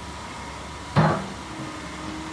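An excavator's metal arm gives a sharp clank.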